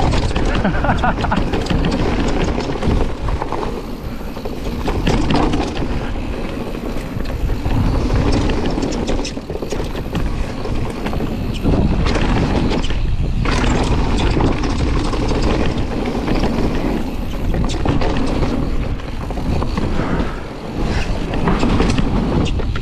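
Wind rushes steadily past the rider.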